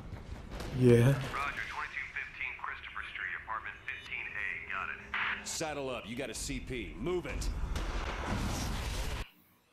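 A man speaks briskly over a radio headset.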